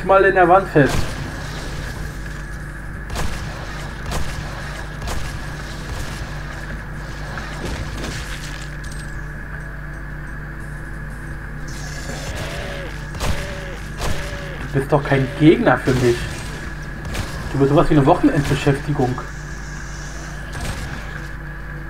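A shotgun fires loud, sharp blasts.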